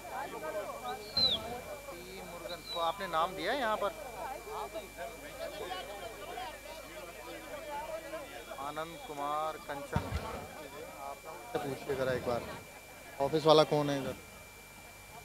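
A crowd of men talk and chatter nearby.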